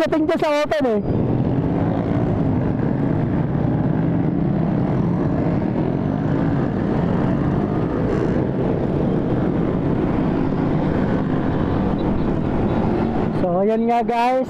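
A motorcycle engine drones steadily while riding.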